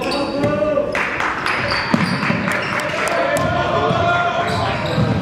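Sneakers squeak on a wooden court as players run.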